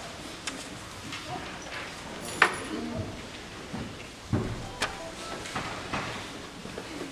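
Children's footsteps tap softly on the floor.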